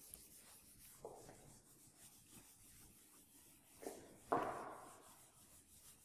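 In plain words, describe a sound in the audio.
A duster squeaks as it wipes a whiteboard.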